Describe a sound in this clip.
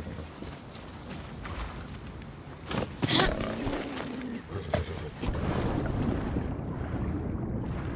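Water splashes as a horse wades through a river.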